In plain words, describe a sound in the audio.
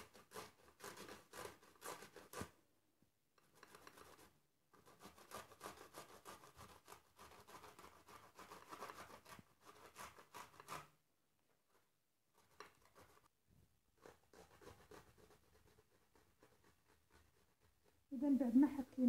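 A cucumber is grated against a metal grater with rapid rasping scrapes.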